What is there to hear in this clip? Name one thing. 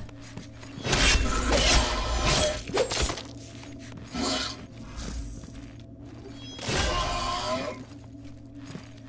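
A blade slashes and clangs in quick strikes.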